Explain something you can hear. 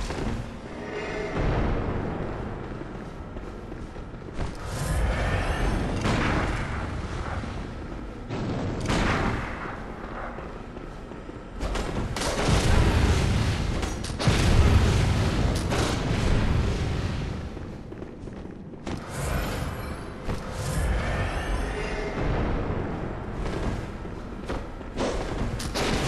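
Metal blades swing and clash in a fight.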